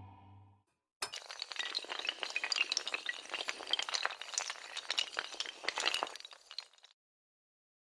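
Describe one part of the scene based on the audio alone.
Dominoes clatter rapidly as they topple in a chain.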